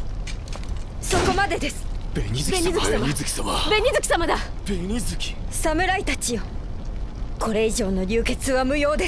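A young woman speaks calmly and firmly.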